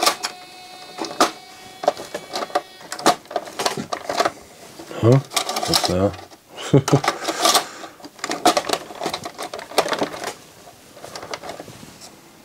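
Fingers tap and click against metal parts of a small machine.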